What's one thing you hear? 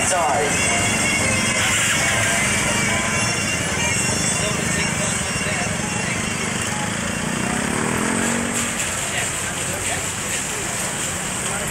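Street traffic hums and rumbles outdoors.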